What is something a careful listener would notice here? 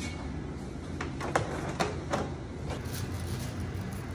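Metal trays clatter against each other.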